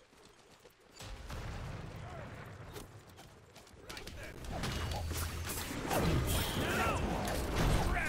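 Magic spells burst and weapons clash in a fast fight.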